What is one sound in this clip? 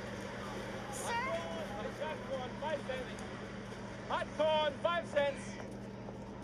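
A man calls out loudly through a small loudspeaker.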